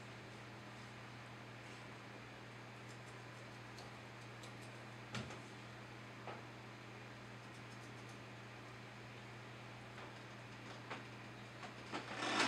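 A crayon scratches and taps on a drawing board.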